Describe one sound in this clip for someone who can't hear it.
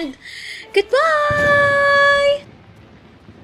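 A young woman sings out a long, drawn-out note close to a microphone.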